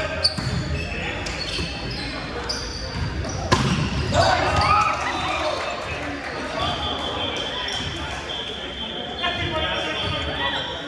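Young men shout and call out to each other across the echoing gym.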